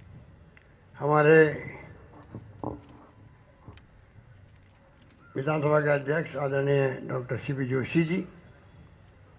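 A man speaks slowly into a microphone over a loudspeaker, with pauses.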